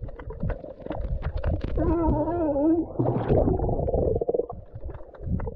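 Water splashes and sloshes at the surface.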